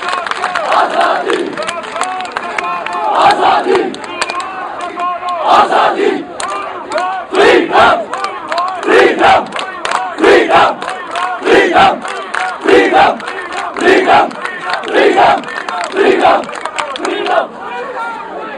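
A large crowd of men chants slogans loudly in rhythm outdoors.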